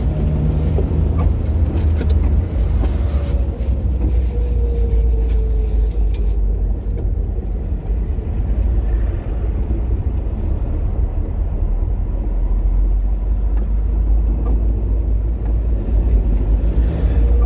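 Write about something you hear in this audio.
A vehicle's engine rumbles steadily from close by.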